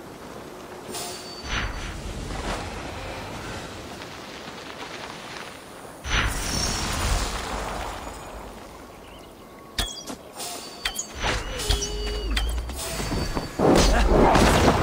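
Footsteps rustle through grass and over stones.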